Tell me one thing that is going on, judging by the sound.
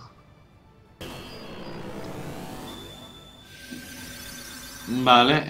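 Magic effects whoosh and shimmer.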